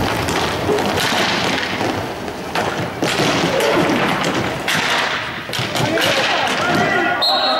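Hockey sticks clack against a ball and the floor.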